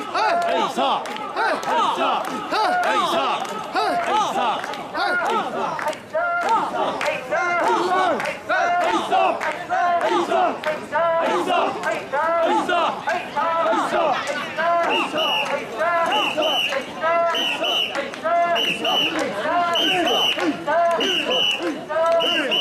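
A crowd of men chant loudly in rhythmic shouts close by.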